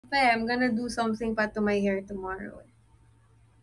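A young woman talks close to a microphone, with animation.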